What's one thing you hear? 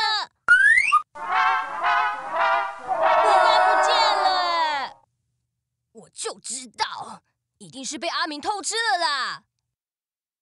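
A young boy speaks loudly and with animation.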